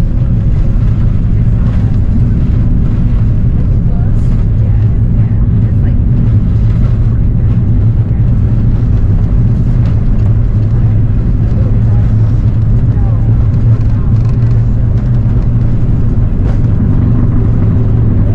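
A jet engine roars steadily inside a plane cabin.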